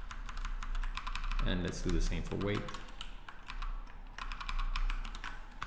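Computer keys click rapidly as someone types.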